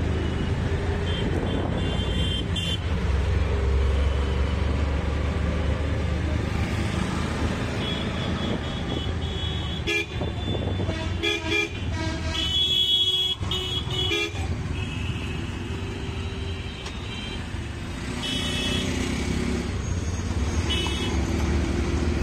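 Vehicle horns honk in short bursts from nearby traffic.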